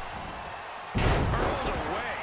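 A body slams onto a wrestling mat with a heavy thud.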